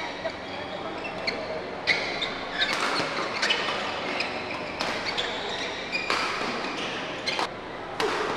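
Rackets strike a shuttlecock with sharp pops in a rally.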